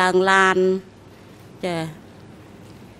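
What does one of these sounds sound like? An elderly woman speaks briefly into a microphone.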